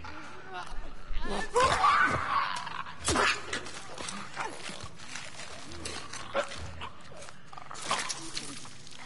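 Heavy blows thud during a close struggle.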